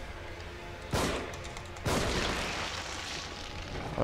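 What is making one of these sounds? A revolver fires a shot.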